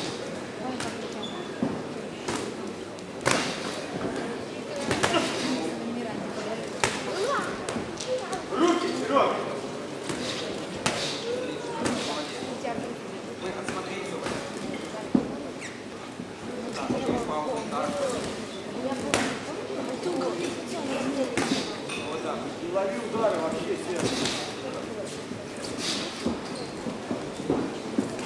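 Boxing gloves thud sharply against a body and head.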